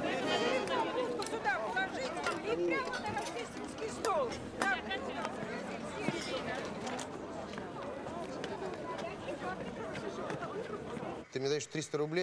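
A crowd chatters at an outdoor market.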